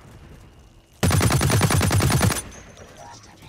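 A rifle fires a loud, rapid burst of shots.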